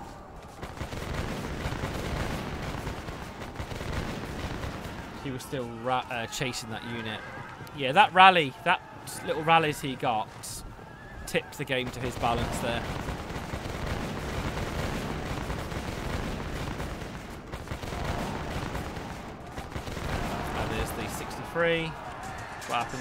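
Musket fire and battle noise rumble steadily in the background.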